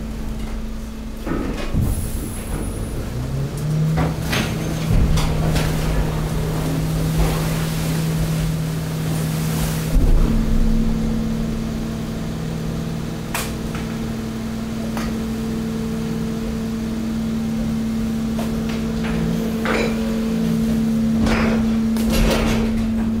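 A machine hums steadily.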